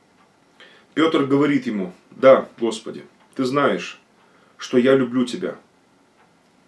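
A middle-aged man speaks calmly and slowly, close by.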